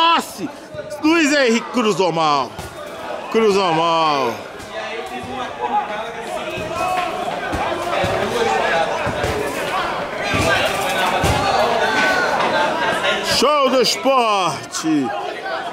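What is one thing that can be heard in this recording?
Young men shout loudly to one another outdoors.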